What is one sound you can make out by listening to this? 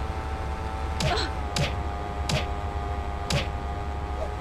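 Fists land on bodies with sharp, heavy thuds.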